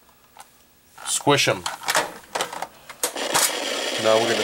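Electronic video game sounds bleep and chirp.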